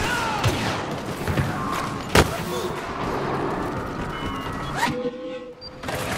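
Laser blasters fire in sharp bursts.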